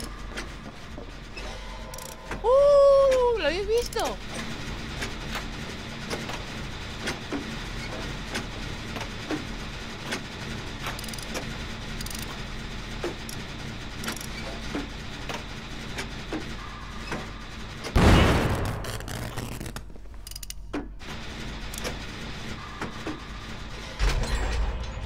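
A machine rattles and clicks softly.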